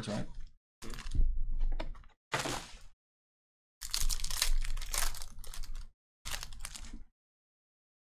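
Foil card packs crinkle and tear as hands rip them open.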